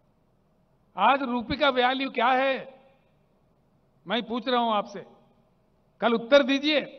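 An older man speaks into microphones in short bursts, heard through a loudspeaker.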